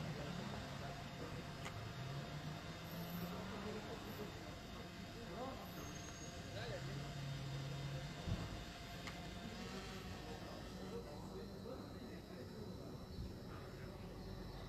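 Engines of slow traffic hum and rumble far below.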